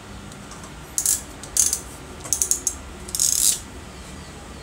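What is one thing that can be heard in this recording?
Metal crimping pliers click and squeeze onto wire terminals.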